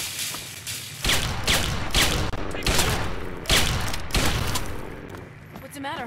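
A gun fires several loud shots in an echoing room.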